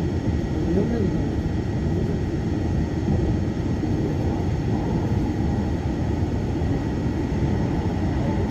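A train rumbles steadily along its rails.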